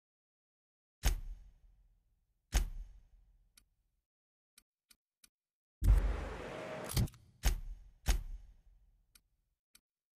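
Short interface clicks and whooshes sound as menu items change.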